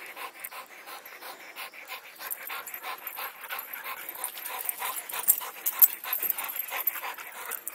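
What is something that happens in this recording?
A dog pants rapidly close by.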